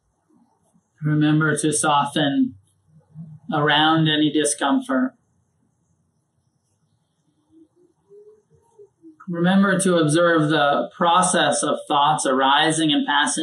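A man speaks calmly and slowly into a close microphone, with pauses.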